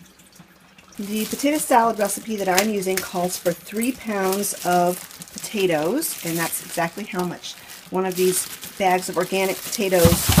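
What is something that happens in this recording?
A plastic bag crinkles and rustles in someone's hands.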